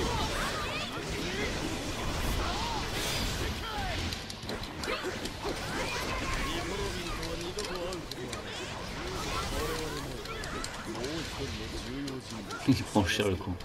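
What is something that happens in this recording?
Sword slashes and blasts crash in a fast fight.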